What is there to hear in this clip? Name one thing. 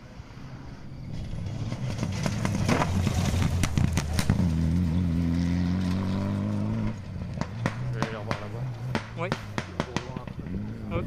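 A rally car engine roars up loudly, revving hard as the car speeds past.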